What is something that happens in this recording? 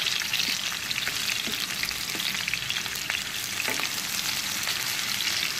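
A wooden spatula scrapes and knocks against a pan.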